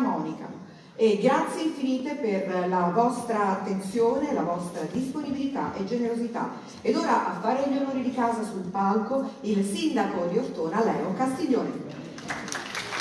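A woman speaks expressively into a microphone in a large hall.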